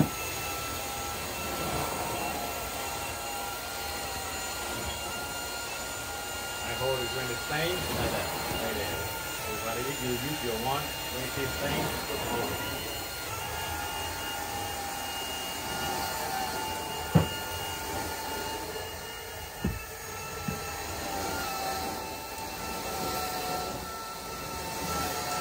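A carpet cleaning machine hums steadily.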